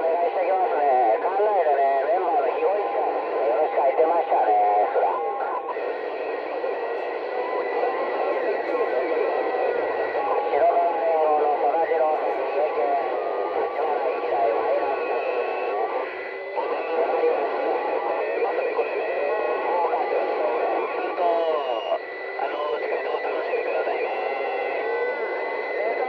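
A radio receiver plays a crackly, muffled transmission through its small loudspeaker.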